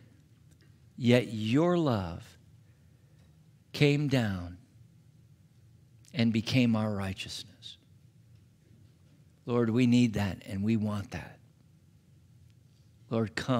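A middle-aged man speaks calmly and expressively through a microphone, pausing between phrases.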